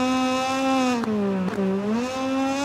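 Gear shifts crack sharply.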